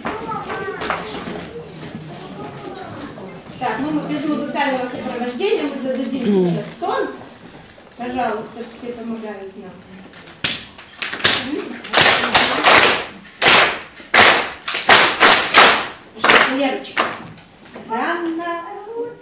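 Young children sing together.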